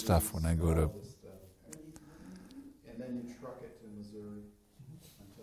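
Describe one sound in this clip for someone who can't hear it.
An elderly man speaks calmly and warmly, close to a microphone.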